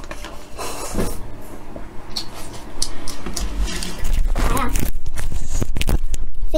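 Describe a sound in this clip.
A young woman chews and smacks her lips up close.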